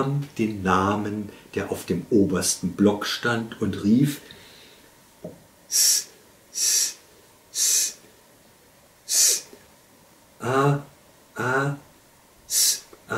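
An elderly man reads aloud slowly and calmly, close by, with long pauses.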